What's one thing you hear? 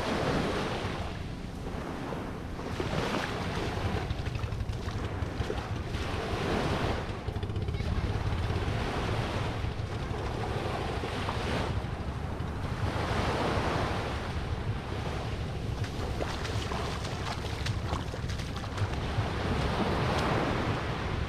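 Wind rumbles across the shore.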